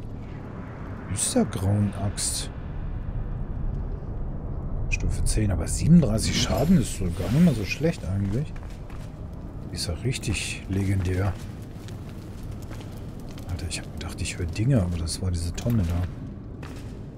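A man talks calmly and close into a microphone, in bursts.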